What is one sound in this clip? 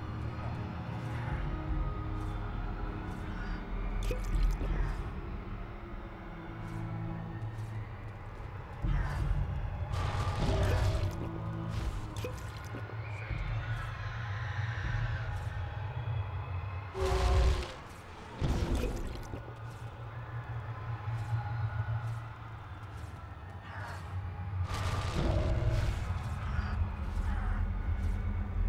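Weapons strike with sharp thuds.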